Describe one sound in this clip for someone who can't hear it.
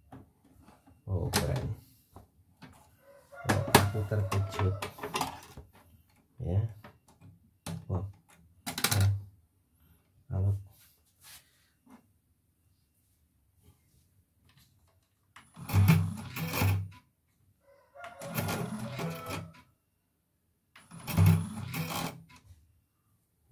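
Plastic parts of a machine click and rattle as they are handled.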